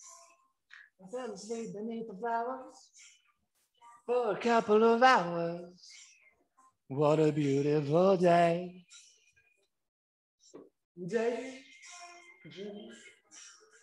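A man sings loudly and emotionally close to a microphone.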